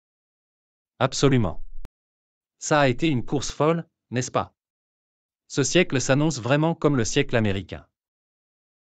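A man speaks calmly and clearly, as if reading out.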